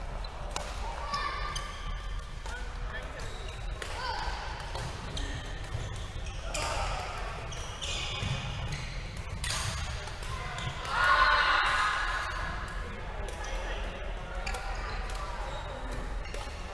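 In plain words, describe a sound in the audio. Shoes squeak on a hard floor in a large echoing hall.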